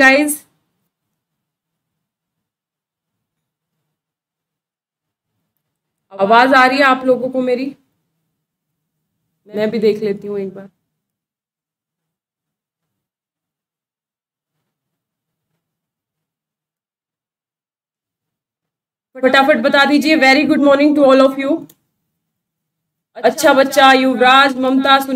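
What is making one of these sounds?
A young woman speaks calmly into a close microphone, with pauses.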